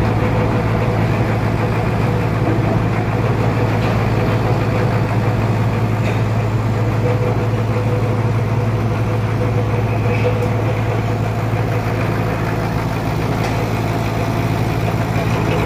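A large band saw roars steadily as it cuts through a thick log.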